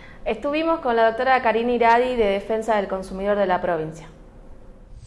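A woman speaks calmly and clearly into a microphone.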